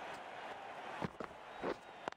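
A bat strikes a cricket ball with a sharp crack.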